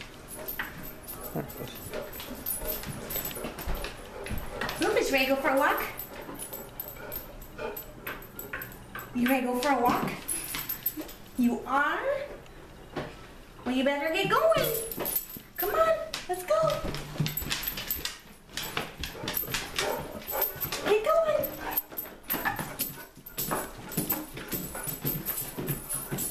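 A dog's claws click and tap on a wooden floor and stairs.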